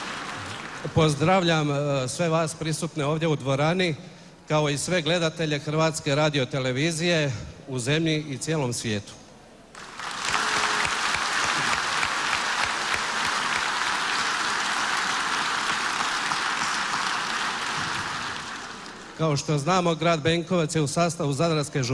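A man sings through a microphone in a strong, steady voice.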